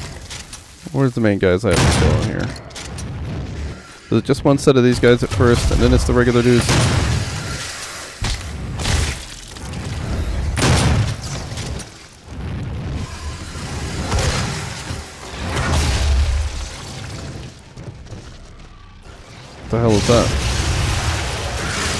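A monster growls and snarls up close.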